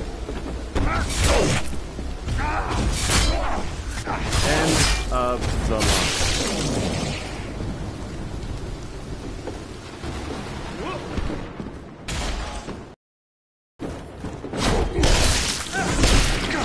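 Heavy blows land in a close fight.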